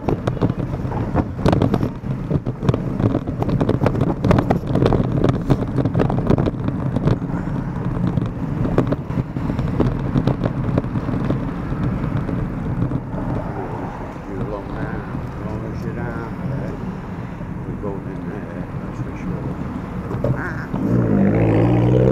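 Car engines hum nearby in slow traffic.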